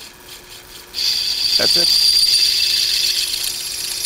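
A drill bit screeches loudly as it bites into metal.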